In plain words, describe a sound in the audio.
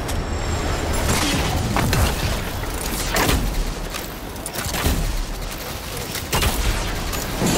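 A gun fires in loud, sharp bursts.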